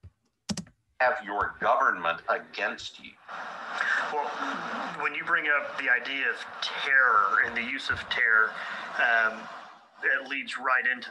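An older man speaks calmly over a recording.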